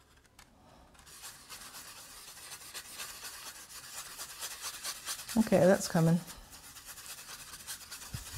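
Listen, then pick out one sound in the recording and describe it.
A paintbrush swishes and dabs softly through wet paint.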